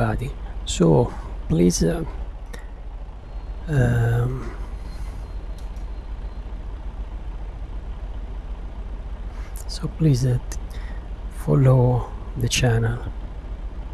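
A truck engine idles with a low steady hum.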